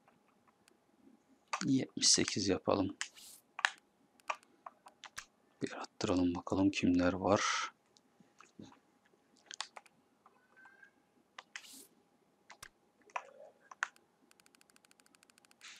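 Short menu clicks sound as selections change.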